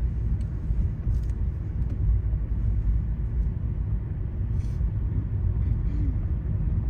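Tyres rumble on a rough road.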